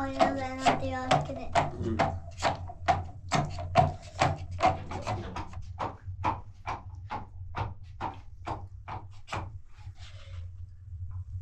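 A wooden pestle thumps rhythmically inside a plastic bottle.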